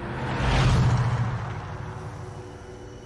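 A car engine roars as a car speeds past on a gravel road.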